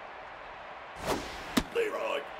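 A pitched ball whooshes through the air.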